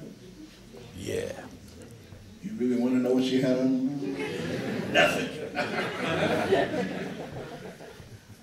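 A man sings into a microphone with a full, open voice.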